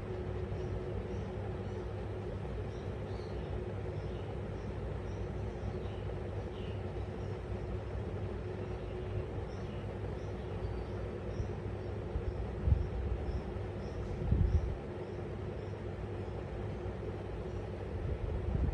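A small parrot chirps softly and repeatedly, close by.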